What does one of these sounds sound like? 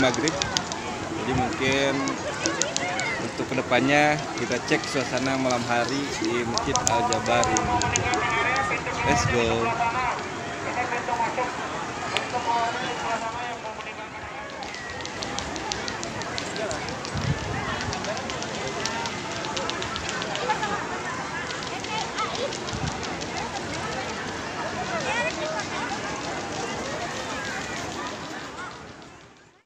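A crowd murmurs outdoors in the open.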